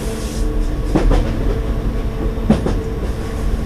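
Train wheels clack and squeal on the track.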